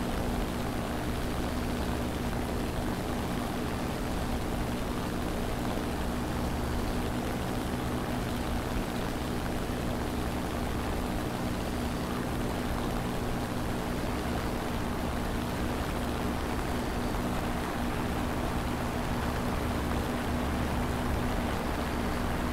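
Wind rushes past the aircraft.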